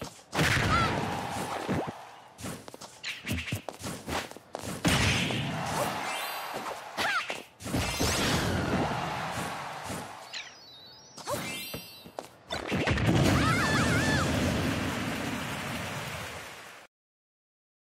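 Punches, thuds and blasts crash in quick bursts.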